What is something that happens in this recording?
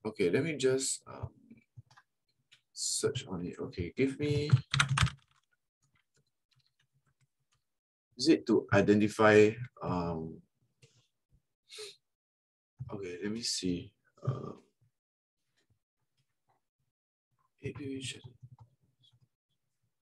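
A man speaks calmly in short bursts through a close microphone.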